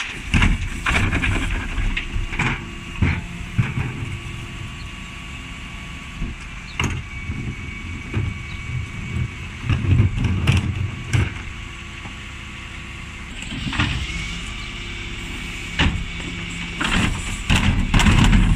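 Plastic wheelie bins bang and rattle against the truck.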